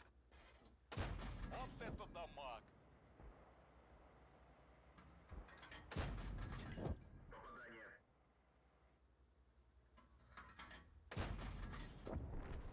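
A tank cannon fires with a loud, heavy boom.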